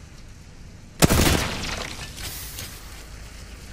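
Gunshots crack nearby in quick bursts.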